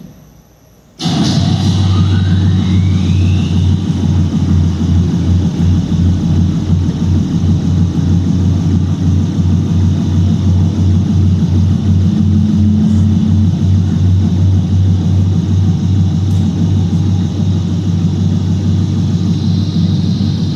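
An electric spark discharge buzzes loudly and harshly.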